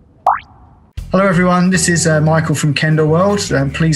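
A man speaks calmly and cheerfully into a close microphone.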